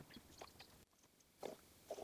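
Liquid pours from a plastic bottle into a funnel.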